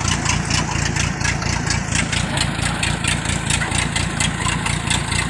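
A tracked machine's engine rumbles and clatters loudly nearby.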